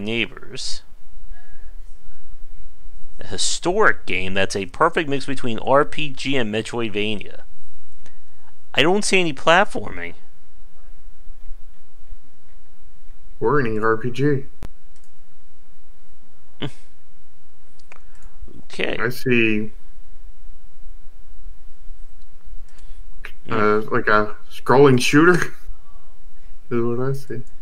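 A man talks casually and with animation into a close microphone, in short bursts with pauses.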